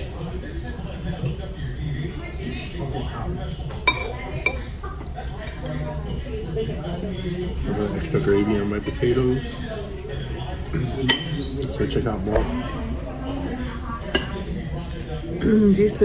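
Forks clink and scrape against plates.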